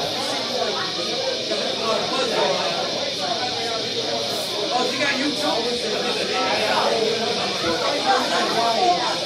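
A live rock band plays loudly in a room.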